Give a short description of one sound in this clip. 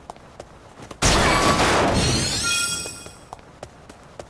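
A magical burst whooshes loudly and chimes.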